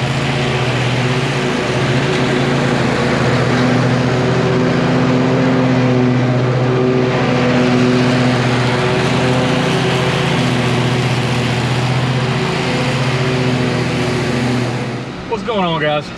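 A riding mower's engine drones steadily nearby.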